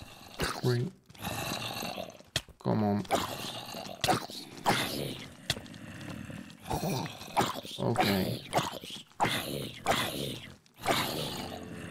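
Zombies groan nearby.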